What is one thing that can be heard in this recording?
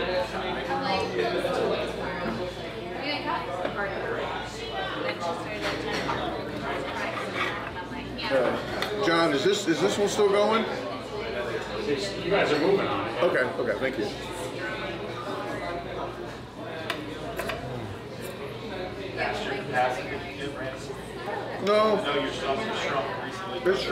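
Knives and forks scrape and clink on plates.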